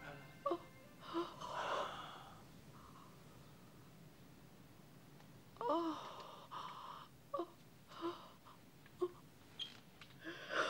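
A woman gasps and sobs in short, breathy bursts close by.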